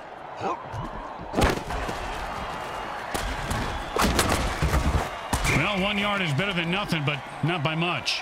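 Armoured players crash into each other with heavy thuds.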